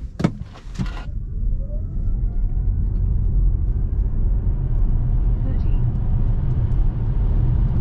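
An electric motor whines, rising in pitch as the car speeds up.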